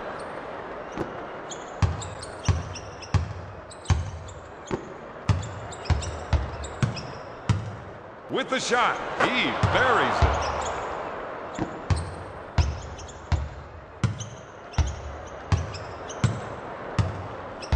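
A basketball bounces steadily on a hard floor.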